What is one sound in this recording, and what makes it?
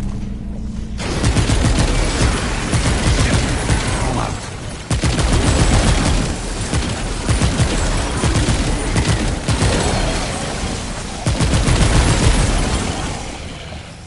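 Energy guns fire in rapid bursts with loud crackling blasts.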